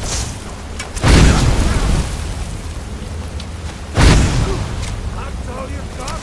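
A fire spell whooshes and roars in loud bursts.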